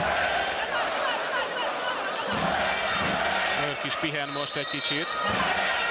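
A crowd cheers and chants loudly in a large echoing hall.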